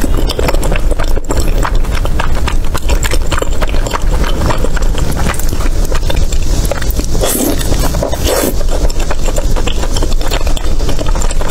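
Chopsticks squelch through thick sauce.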